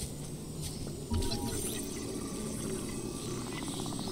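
An electronic scanner hums and whirs while scanning.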